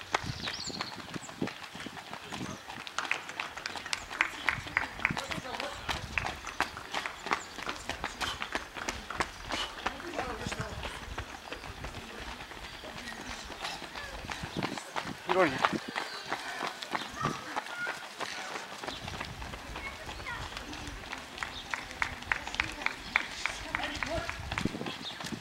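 Runners' footsteps patter on asphalt as they pass close by.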